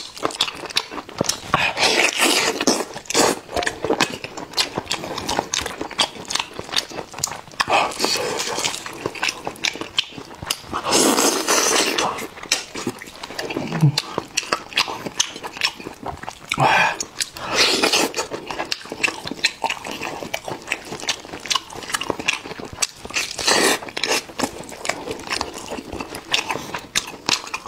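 A man chews and slurps food loudly close to a microphone.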